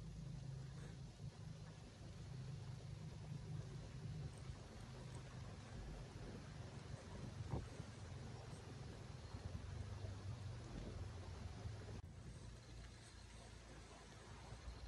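Ducks quack softly nearby.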